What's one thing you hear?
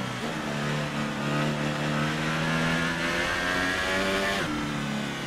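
A racing car engine whines loudly at high revs, rising in pitch and dropping briefly as the gears shift.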